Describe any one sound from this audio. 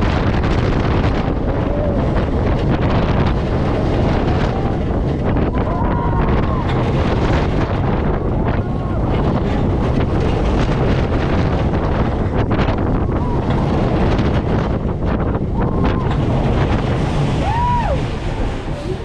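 Wind roars loudly past a fast-moving roller coaster.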